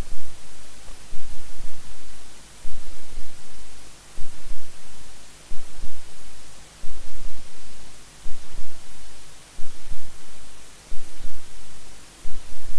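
A keyboard plays a rhythmic tune through loudspeakers.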